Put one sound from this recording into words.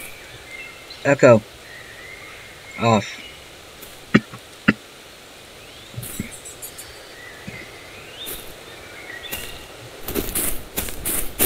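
A young man talks briefly and casually, close to a microphone.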